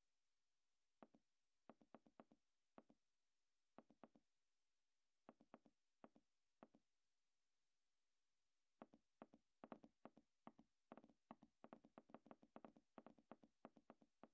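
Footsteps patter on a dirt street.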